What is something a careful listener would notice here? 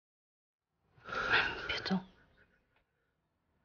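A man groans loudly in pain.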